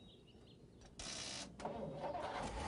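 An old truck engine starts up.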